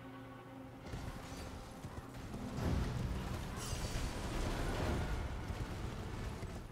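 A horse's hooves thud steadily on the ground.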